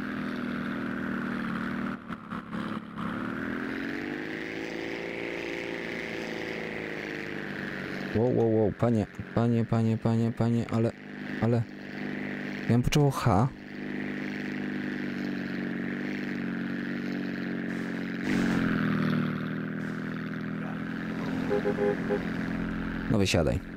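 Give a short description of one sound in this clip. A propeller plane engine drones steadily, rising and falling in pitch.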